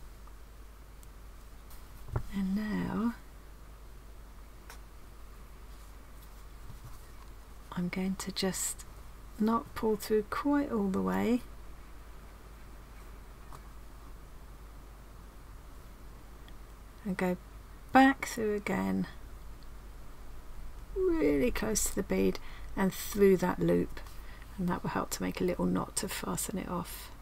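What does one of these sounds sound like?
Thread rustles softly as it is pulled through cloth.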